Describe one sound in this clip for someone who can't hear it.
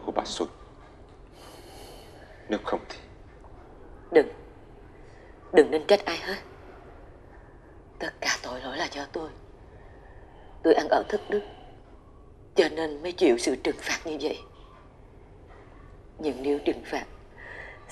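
A middle-aged man speaks quietly nearby.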